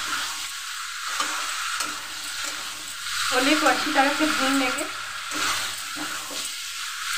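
Food sizzles and crackles as it fries in a pan.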